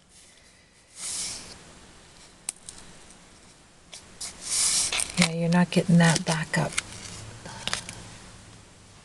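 Stiff paper rustles and slides as a card is handled.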